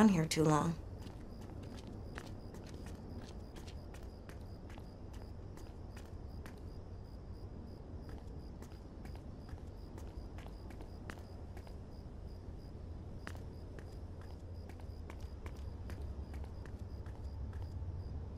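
Footsteps tap on pavement.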